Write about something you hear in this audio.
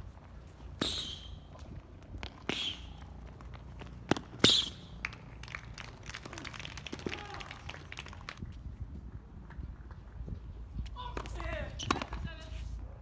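A tennis ball is struck with sharp pops of a racket.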